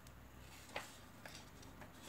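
A sheet of paper rustles as it is lifted.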